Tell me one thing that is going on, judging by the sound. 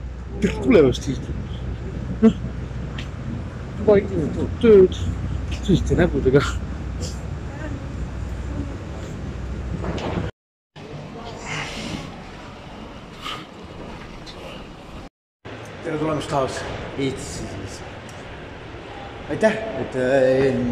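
A young man talks up close, with animation.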